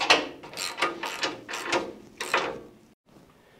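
A wrench ratchets against metal with quick clicks.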